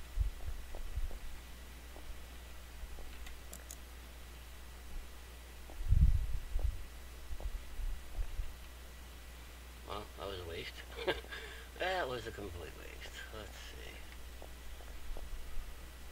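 Footsteps thud softly on a stone floor.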